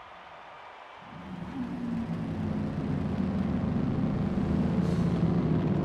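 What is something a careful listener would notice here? Many race car engines rumble and roar together at close range.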